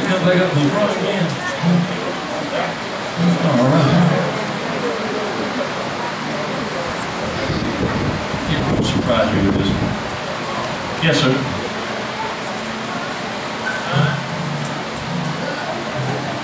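Several young women sing together into microphones.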